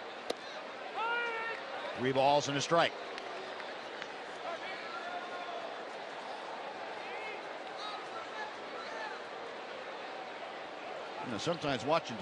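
A large stadium crowd murmurs steadily in the background.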